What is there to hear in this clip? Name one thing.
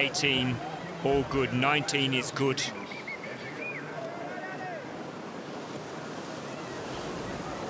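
A paddle splashes in fast water.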